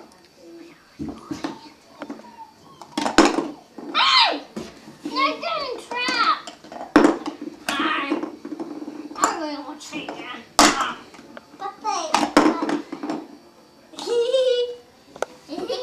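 A young child chatters and squeals nearby.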